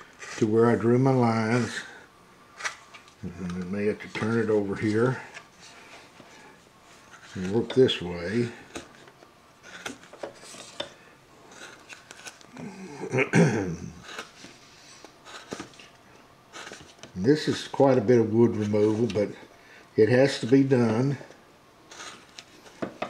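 A carving knife scrapes and shaves wood close by.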